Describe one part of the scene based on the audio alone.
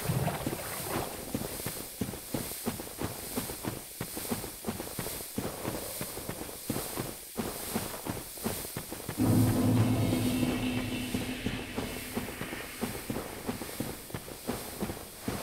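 Footsteps crunch steadily on soft ground.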